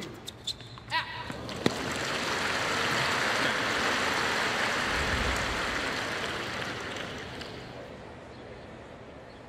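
A crowd cheers and applauds loudly, then fades.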